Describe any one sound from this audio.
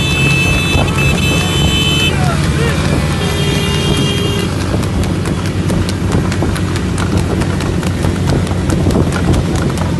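Cart wheels rumble over the road.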